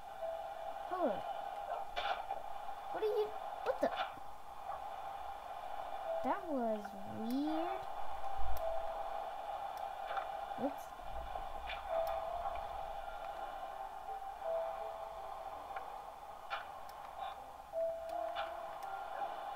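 Game blocks crunch as they are dug out, heard through a television speaker.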